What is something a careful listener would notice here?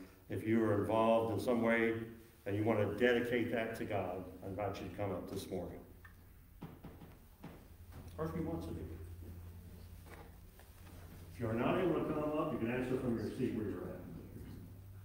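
An adult man speaks calmly into a microphone.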